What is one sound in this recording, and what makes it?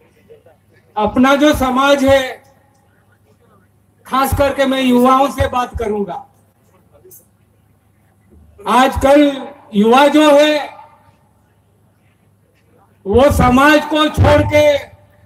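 An elderly man chants loudly through a loudspeaker in bursts, with pauses between them.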